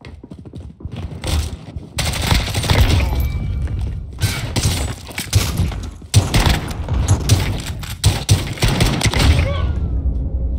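Rifle shots fire in rapid, loud bursts.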